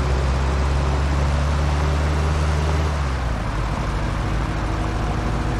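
A car engine hums steadily as it drives along.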